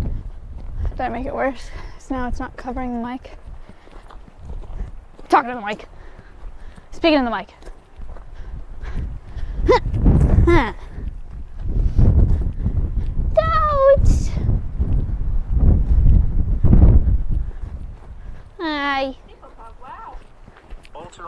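A young woman calls out loudly in a high voice, close by.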